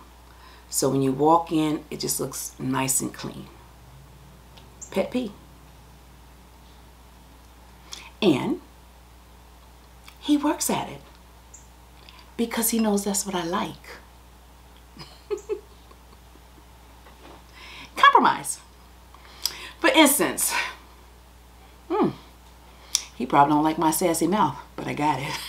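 A woman speaks with animation close to a microphone, pausing often.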